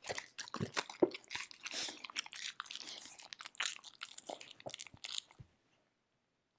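A dog sniffs and licks at a plastic bowl close by.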